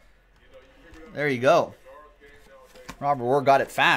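A cardboard box rustles as hands handle it.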